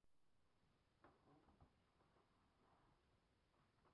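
Clothing rustles and footsteps shuffle close by.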